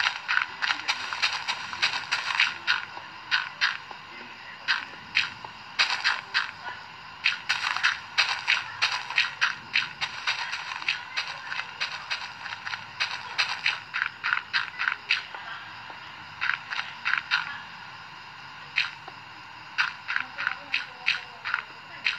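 Blocks of dirt and stone crunch as they are dug out again and again.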